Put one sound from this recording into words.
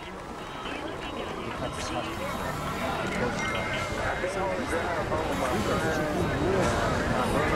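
Many men's and women's voices talk over one another, growing steadily louder.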